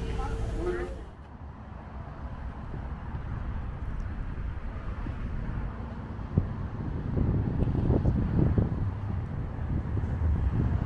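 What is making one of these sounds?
Water laps and splashes gently outdoors in the wind.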